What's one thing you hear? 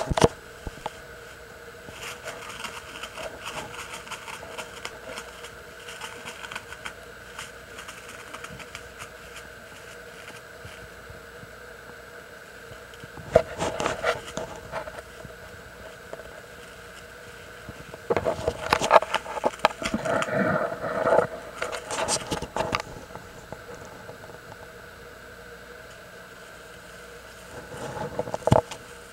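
A ferret rustles and scratches on a mat.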